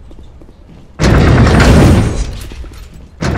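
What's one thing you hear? An elevator door slides open with a loud whoosh.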